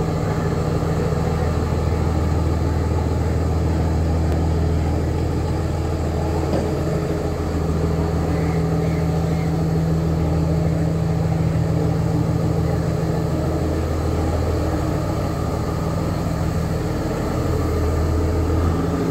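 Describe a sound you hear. Train wheels rumble and clatter along the rails.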